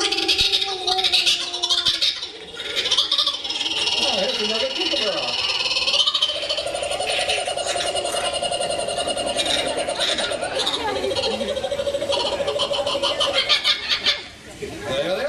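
A cockatoo squawks and chatters loudly nearby.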